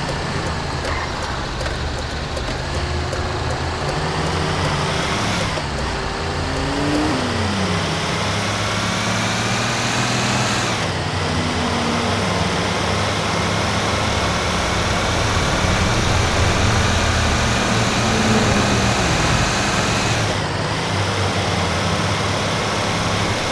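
A heavy truck engine revs and shifts gears as it speeds up.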